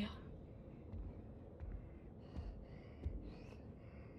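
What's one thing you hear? Heavy footsteps thud slowly on a hard floor.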